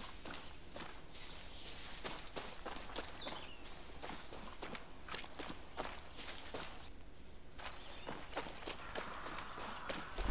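Footsteps crunch quickly and steadily on dirt and grass.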